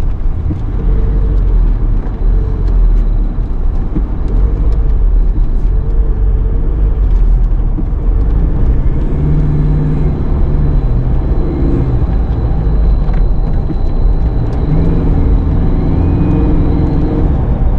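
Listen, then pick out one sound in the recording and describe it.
A car engine hums steadily from inside the cabin while driving.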